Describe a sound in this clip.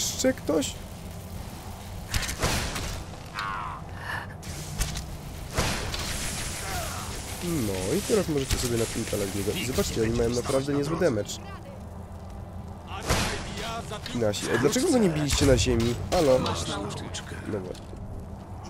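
Magic bolts crackle and zap in bursts.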